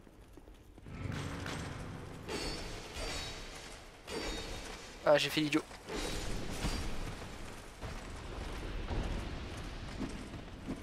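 Swords clash and armour clanks in a fight.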